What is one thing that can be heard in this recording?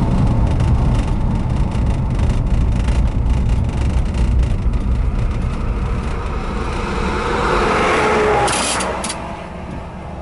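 A car drives along, its road noise heard from inside.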